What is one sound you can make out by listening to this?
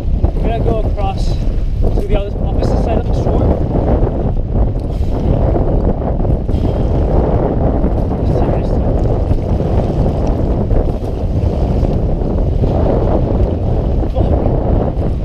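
A paddle splashes through choppy water.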